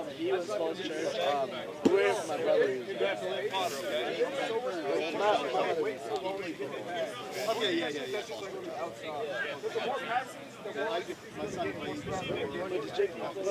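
Young men talk and call out to one another outdoors.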